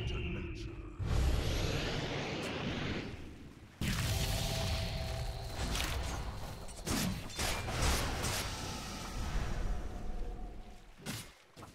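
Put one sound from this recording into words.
Magic spells burst and crackle in a fantasy battle.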